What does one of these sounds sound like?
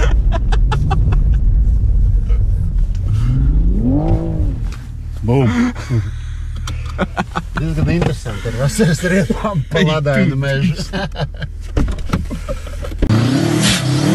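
A car engine roars inside the cabin.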